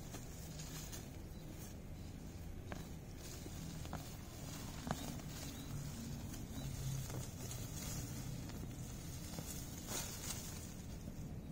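A person pulls plants out of the ground.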